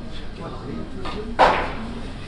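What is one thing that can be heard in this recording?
Billiard balls clack against each other.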